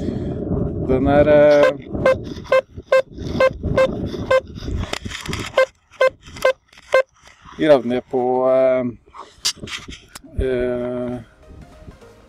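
A metal detector beeps with short, warbling tones.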